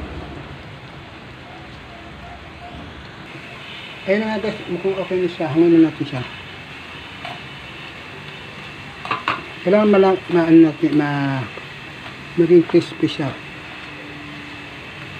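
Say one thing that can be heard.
Water bubbles at a steady boil.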